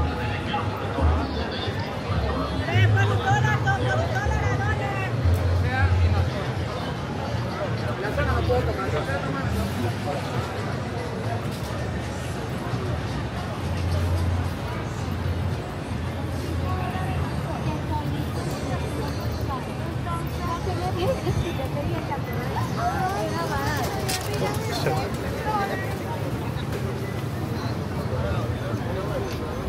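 A crowd of people murmurs and talks nearby outdoors.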